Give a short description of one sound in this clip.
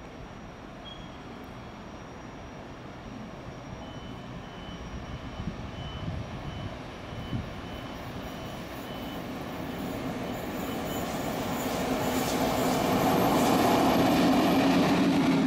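An electric locomotive hums as it approaches and grows louder.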